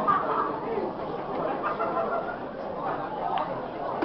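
A cue strikes a billiard ball with a sharp click.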